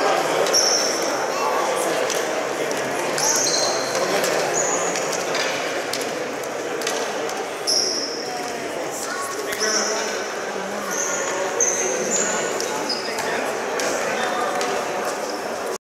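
Young players chatter and call out in a large echoing hall.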